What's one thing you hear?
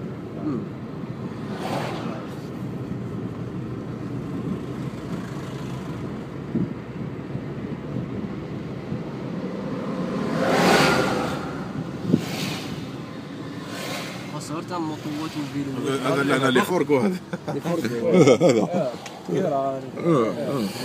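A car drives along a road, heard from inside as a steady low rumble.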